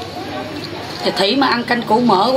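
A woman talks close by with animation.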